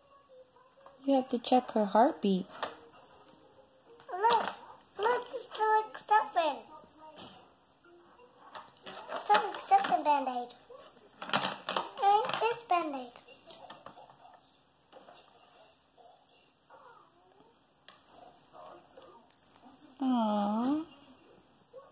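A young girl talks in a high, lively voice close by.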